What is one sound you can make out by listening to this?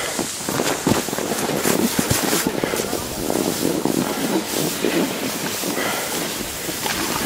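A snowboard scrapes and hisses over packed snow close by.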